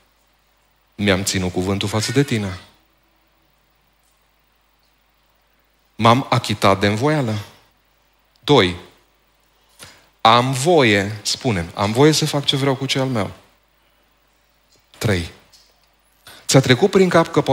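A middle-aged man speaks with animation into a headset microphone, pausing between phrases.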